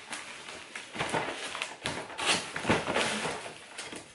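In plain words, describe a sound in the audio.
Plastic wrapping crinkles as it is pulled out.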